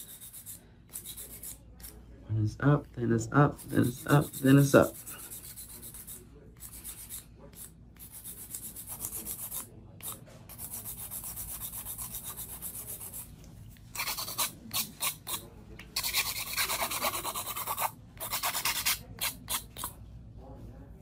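A nail file rasps back and forth across a fingernail in quick scratchy strokes.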